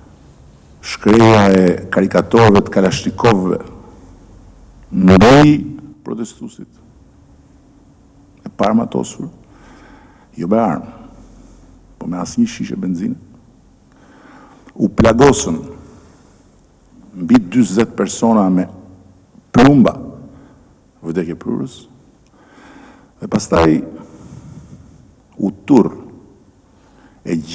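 A middle-aged man speaks forcefully into a microphone, in bursts with pauses.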